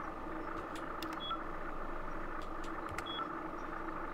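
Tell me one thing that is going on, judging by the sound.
Buttons click on a control panel.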